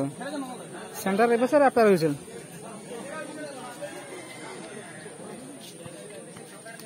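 A crowd chatters and calls in the distance outdoors.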